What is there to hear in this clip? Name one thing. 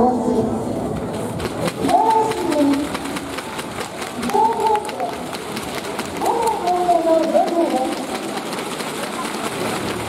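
Spectators clap their hands in quick rhythm.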